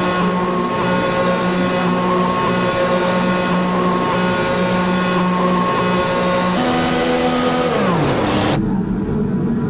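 A racing car engine drones loudly at a steady pitch, then winds down.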